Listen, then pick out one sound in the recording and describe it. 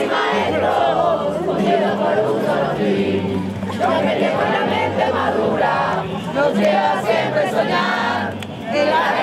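A crowd of young people sings together loudly outdoors.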